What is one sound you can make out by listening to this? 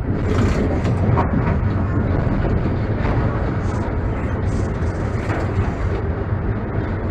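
A tram rumbles steadily along the rails.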